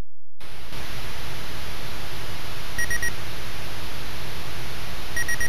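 A low electronic engine noise rumbles and hisses steadily.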